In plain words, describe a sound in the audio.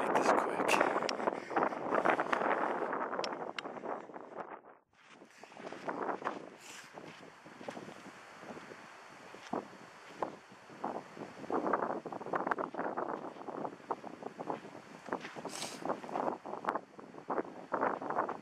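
Wind buffets a microphone outdoors in gusts.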